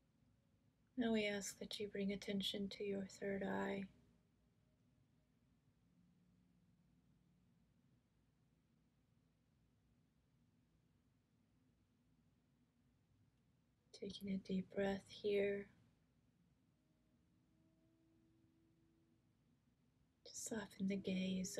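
A middle-aged woman speaks calmly and close to the microphone, in short phrases with long pauses.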